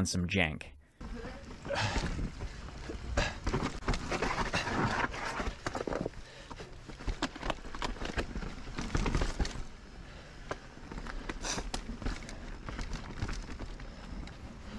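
A mountain bike rattles over roots and rocks.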